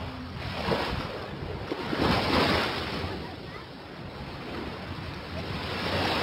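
Bare feet pad softly across wet sand.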